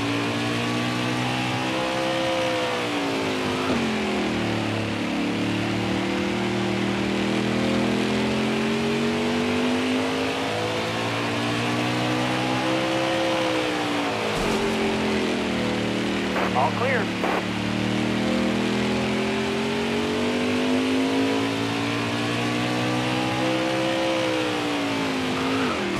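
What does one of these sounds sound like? A racing truck engine roars steadily, its pitch rising and falling as it speeds up and slows for the turns.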